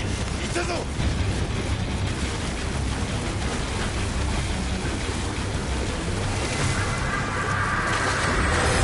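Armoured footsteps run over rough ground.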